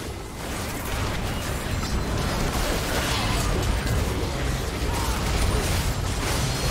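Spell effects whoosh and crackle in a fast game fight.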